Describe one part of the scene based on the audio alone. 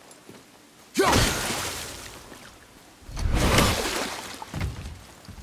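A magical burst whooshes and hisses over water.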